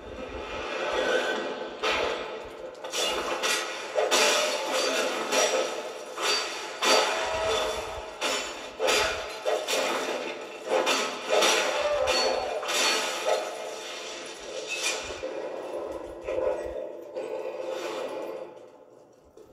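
Sword clashes and magic blasts from a video game sound through a television speaker.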